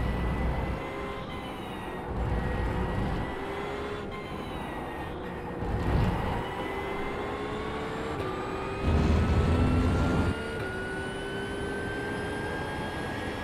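A racing car engine roars, rising in pitch and dropping briefly at each gear change.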